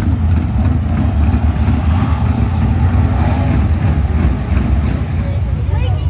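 A race car engine rumbles and revs loudly.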